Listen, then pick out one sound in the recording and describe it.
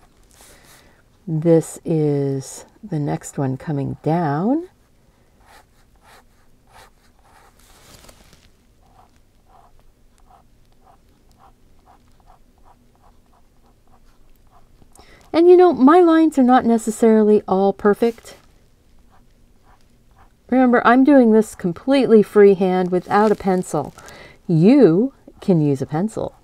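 A felt-tip pen scratches softly across paper.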